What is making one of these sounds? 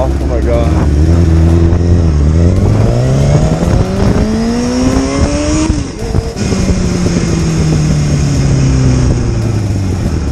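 A motorcycle engine revs up as it speeds away, then shifts gear and pulls on.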